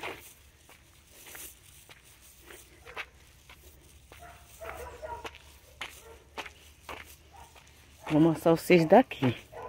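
Footsteps crunch on a dirt path.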